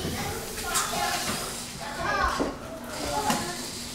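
A marker squeaks on a whiteboard.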